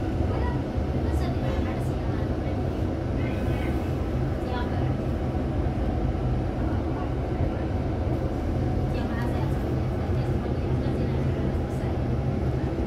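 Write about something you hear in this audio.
A bus engine rumbles steadily up close.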